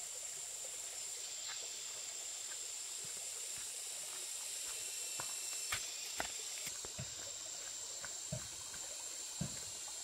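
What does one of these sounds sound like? Footsteps crunch on dry leaves along a path.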